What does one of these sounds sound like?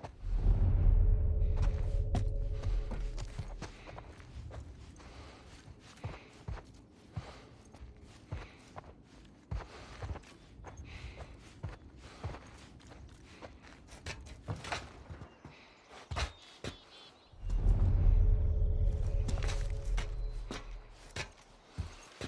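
Footsteps shuffle softly over a gritty floor.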